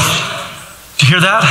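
A man speaks to an audience through a loudspeaker in a large echoing hall.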